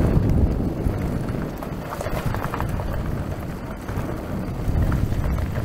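Wind rushes loudly past a moving rider.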